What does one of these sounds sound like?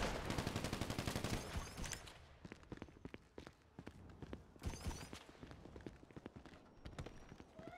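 Footsteps run quickly across pavement.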